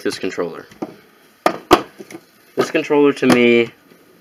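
Plastic parts of a toy drone knock and clatter as it is picked up.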